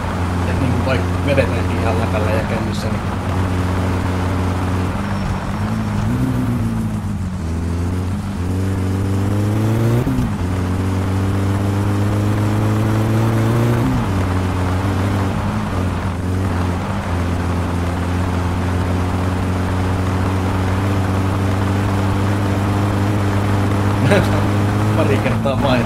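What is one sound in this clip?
A car engine hums steadily and revs up and down through gear changes.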